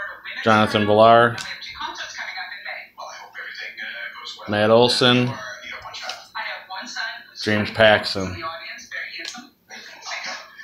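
Trading cards rustle and slide as a hand shuffles through them.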